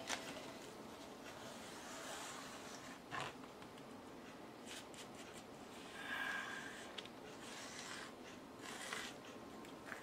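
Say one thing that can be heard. A plastic spreader scrapes softly across paper.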